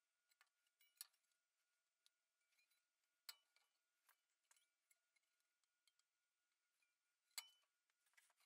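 A sheet metal part knocks lightly on a metal bench.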